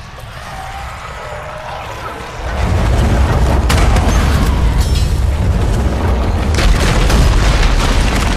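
Blades clash and clang in a fight.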